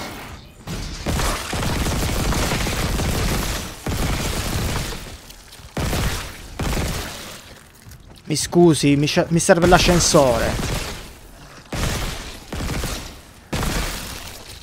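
A weapon fires in rapid bursts.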